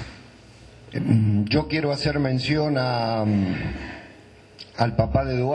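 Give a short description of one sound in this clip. An older man speaks calmly through a microphone.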